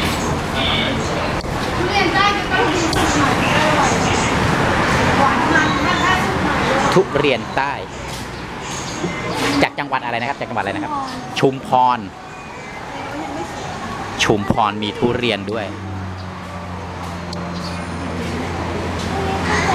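Adults murmur and chatter nearby.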